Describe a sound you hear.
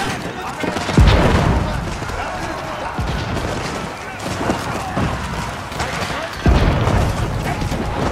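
Explosions boom with deep thuds.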